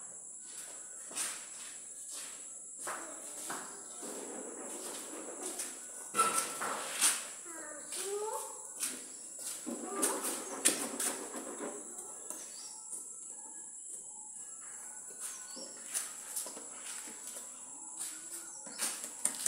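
A tool scrapes and knocks against a hard wall.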